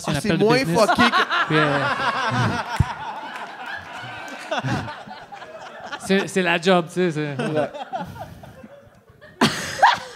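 Men laugh loudly into microphones.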